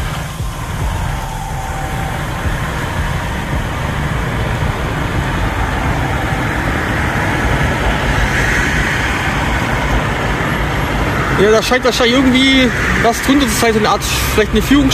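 A fast river rushes and churns steadily below a weir, outdoors in wind.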